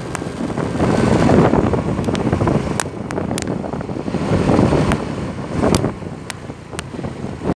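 Wind buffets loudly and rumbles.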